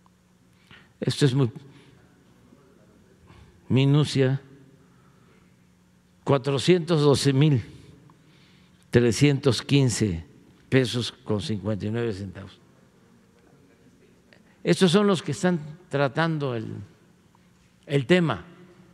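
An elderly man speaks calmly through a microphone in a large echoing hall, with pauses between phrases.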